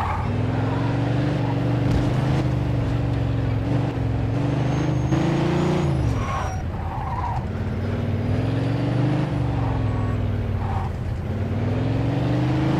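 A car engine roars and revs up and down as it speeds along.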